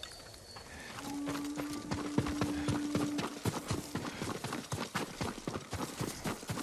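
Footsteps run quickly over grass and dirt.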